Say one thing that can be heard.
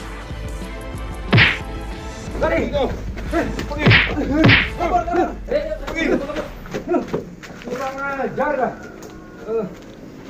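Men shout and laugh excitedly nearby.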